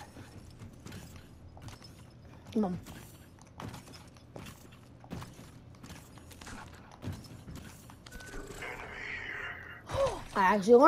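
Footsteps run steadily on a hard floor.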